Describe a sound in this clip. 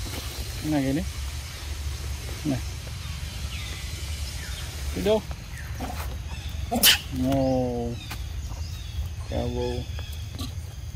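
Young monkeys squeal and shriek up close.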